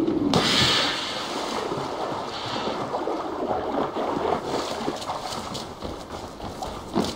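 Water swishes as someone wades through it.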